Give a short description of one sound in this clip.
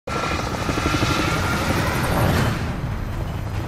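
Helicopter rotors thump loudly overhead.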